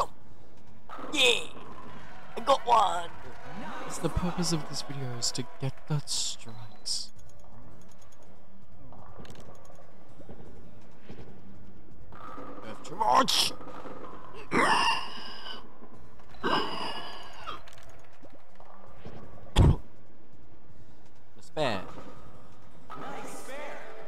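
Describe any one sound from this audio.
A bowling ball rolls down a lane in a video game.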